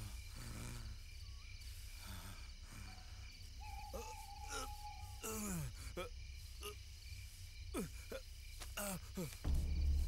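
Dry leaves rustle as a man crawls over the ground.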